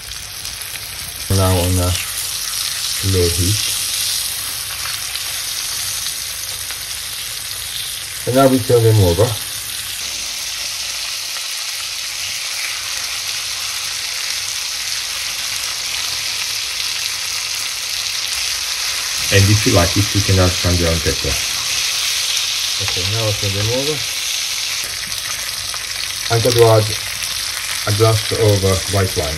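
Meat sizzles and crackles in hot fat in a frying pan.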